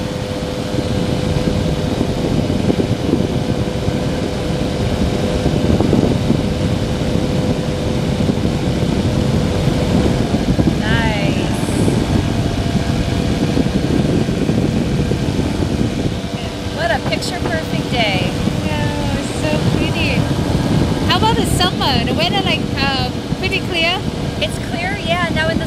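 An engine drones steadily close by.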